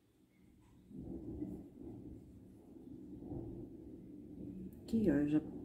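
Yarn rustles softly as a crochet hook pulls it through stitches.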